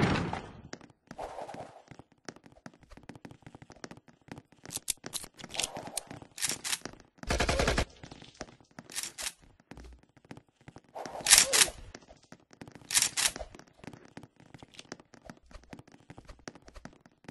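Quick footsteps tap on a hard floor.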